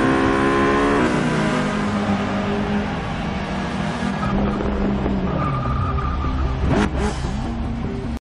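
A racing car engine idles with a low rumble.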